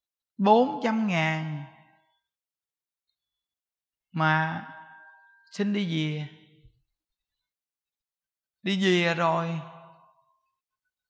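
A man speaks calmly into a microphone in short phrases with pauses.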